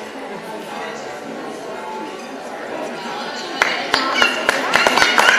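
A woman speaks warmly to a small child nearby in an echoing hall.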